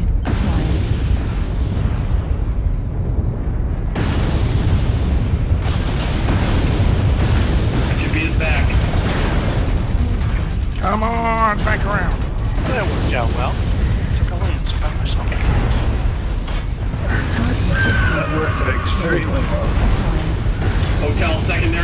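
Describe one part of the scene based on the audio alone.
A deep mechanical rumble drones steadily.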